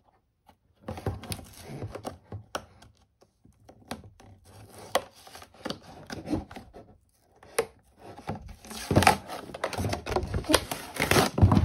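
Fingers tap and rustle against a plastic toy box.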